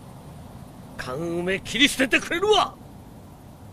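A man speaks gruffly.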